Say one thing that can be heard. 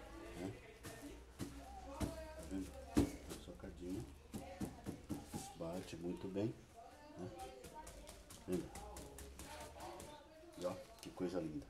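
A plastic plant bag crinkles and rustles in hands.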